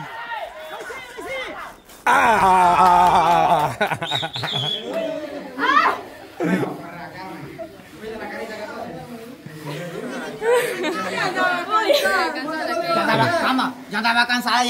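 Young women shout and cheer excitedly nearby.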